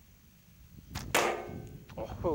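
A slingshot band snaps sharply as a shot is released.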